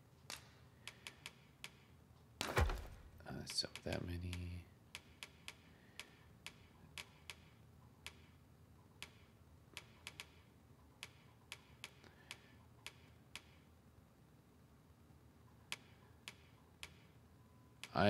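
Soft menu clicks tick one after another.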